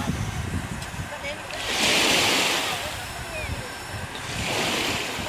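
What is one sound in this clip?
Small waves lap and splash gently at the shore.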